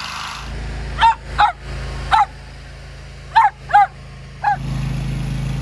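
A dog barks in short, sharp yelps close by.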